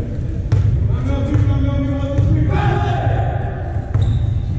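Players shout in the distance.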